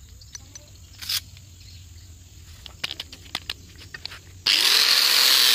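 Metal parts clink and tap as a grinding disc is fitted.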